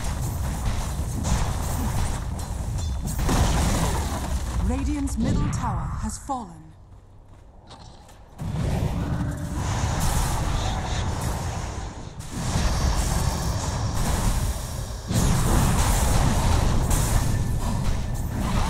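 Magic spells crackle and whoosh amid a fast fantasy battle.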